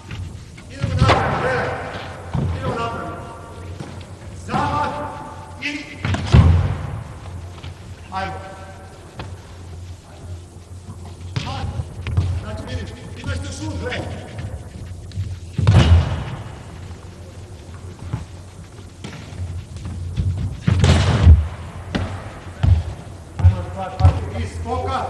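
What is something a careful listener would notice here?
A handball thuds against the floor.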